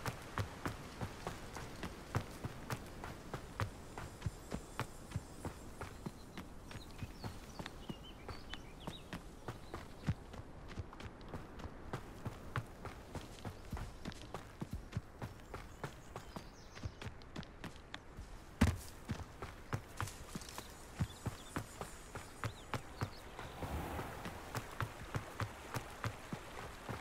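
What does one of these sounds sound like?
Quick footsteps run steadily over earth and stone.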